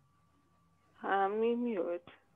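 A woman speaks briefly and loudly through an online call.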